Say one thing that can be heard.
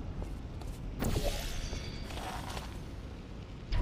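A sci-fi energy gun fires with a sharp zap.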